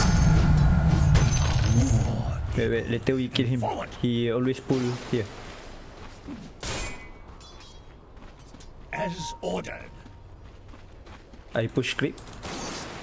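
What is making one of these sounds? Weapons clash and spells crackle in a fight.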